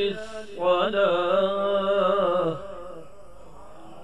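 A man chants in a long, melodic voice through a loudspeaker, with an echo, then falls silent.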